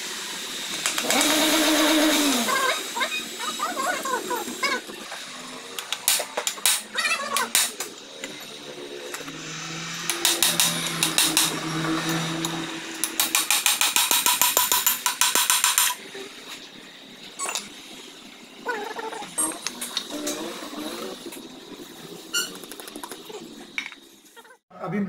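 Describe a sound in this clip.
Metal tools clank and scrape against an engine.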